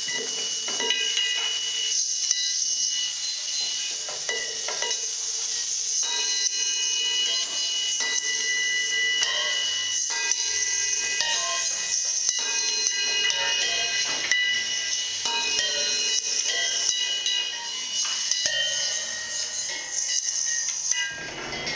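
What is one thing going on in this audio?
Electronic music with pitched tones and clicks plays loudly.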